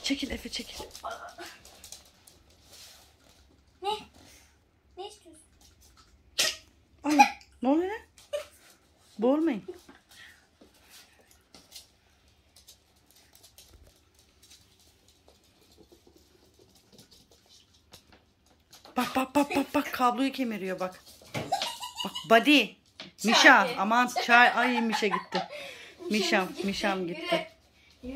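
Puppy paws patter and skitter on a hard floor.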